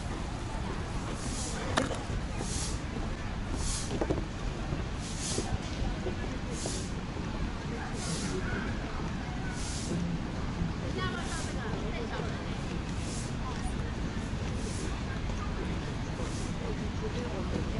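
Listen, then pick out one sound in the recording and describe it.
Footsteps crunch steadily along a paved path.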